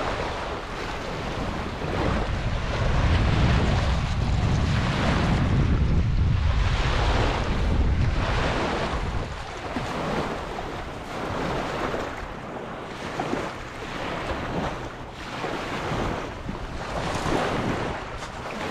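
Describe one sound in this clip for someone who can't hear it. Small waves lap and wash onto a shore.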